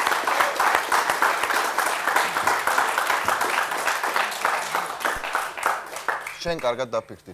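A studio audience applauds loudly.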